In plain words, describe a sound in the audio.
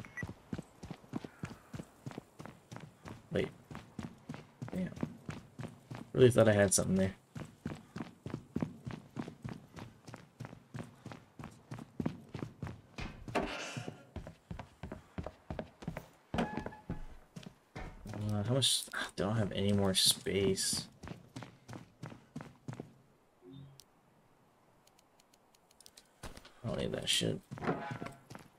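Footsteps tread steadily on a hard floor, echoing in a large empty hall.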